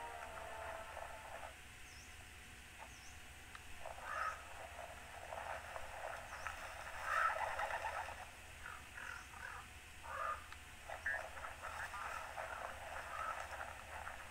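Footsteps patter on dirt ground.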